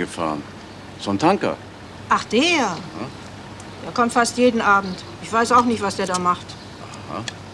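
An elderly woman speaks.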